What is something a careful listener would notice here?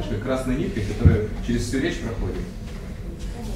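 A man speaks with animation in an echoing room.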